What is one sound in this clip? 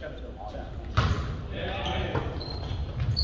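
A volleyball is struck with a sharp slap in an echoing gym.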